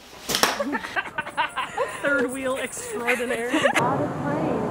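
A young woman laughs loudly outdoors.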